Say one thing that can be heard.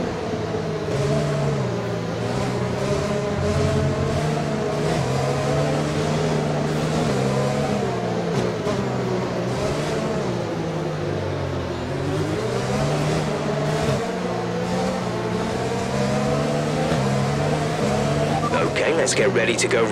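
A racing car engine whines steadily, its pitch rising and falling as it changes gear.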